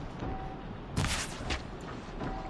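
A bow twangs as an arrow is shot.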